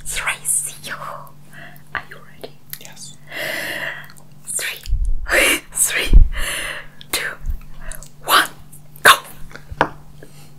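A young woman talks cheerfully close to a microphone.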